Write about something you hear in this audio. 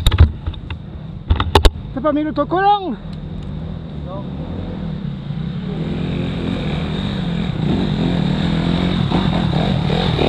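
A dirt bike engine rumbles steadily close by.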